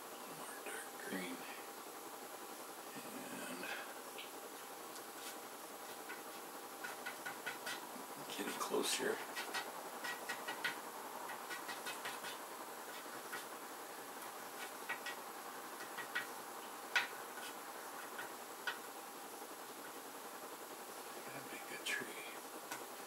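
An elderly man speaks quietly close by.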